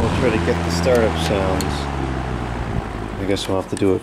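A fan's control knob clicks as it is turned.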